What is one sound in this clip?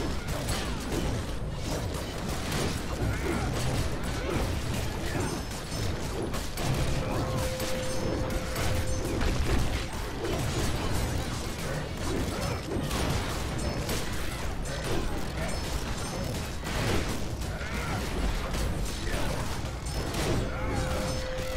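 Magic spells burst and whoosh.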